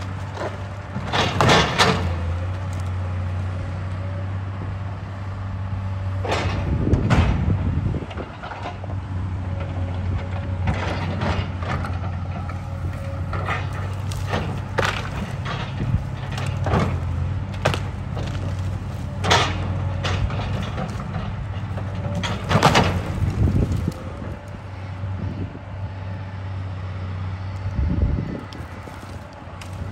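Branches and a tree trunk snap and crack as an excavator pulls at them.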